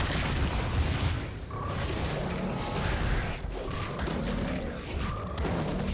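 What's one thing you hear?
Magic spells whoosh and crackle during a video game battle.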